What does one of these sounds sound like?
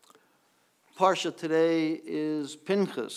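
A man sings a slow chant through a microphone in an echoing hall.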